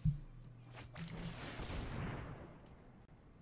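A whooshing game sound effect swells and fades.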